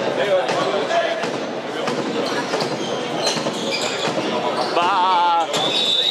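A handball bounces on a hard floor.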